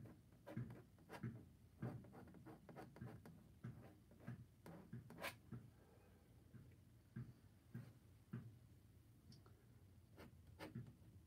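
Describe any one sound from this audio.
A brush dabs and scrapes softly against canvas.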